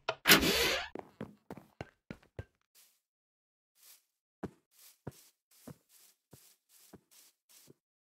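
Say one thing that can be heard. Footsteps thud on the ground at a steady walking pace.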